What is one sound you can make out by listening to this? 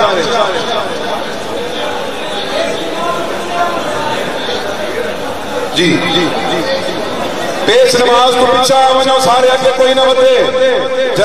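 A crowd of men shouts and chants loudly close by.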